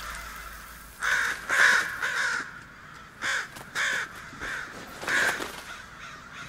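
Crows caw harshly nearby.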